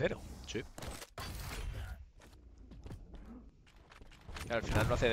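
A man commentates with animation into a headset microphone.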